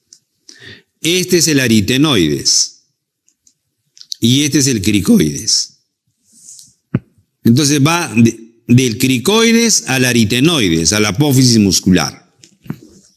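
An elderly man speaks calmly and closely into a microphone, with pauses.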